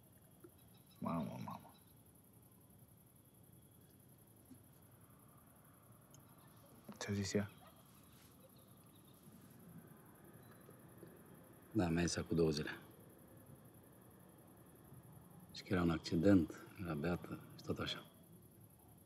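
A man speaks quietly and seriously, close by.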